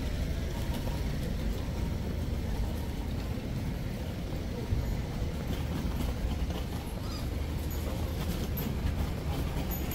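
City traffic hums steadily nearby.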